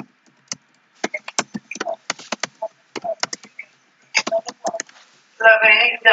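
Keys click rapidly on a computer keyboard.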